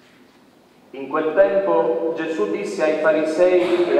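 A man chants loudly into a microphone in an echoing room.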